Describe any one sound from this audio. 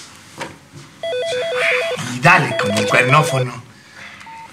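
A phone beeps in short repeated tones.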